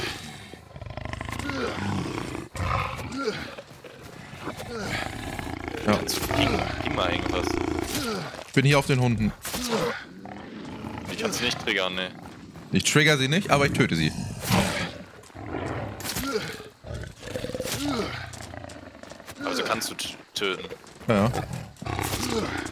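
A young man talks with animation through a microphone, close up.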